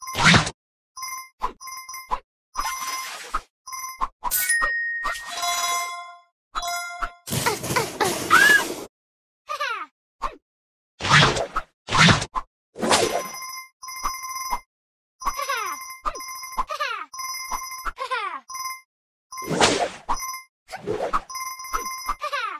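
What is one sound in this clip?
Whooshing swishes sound now and then.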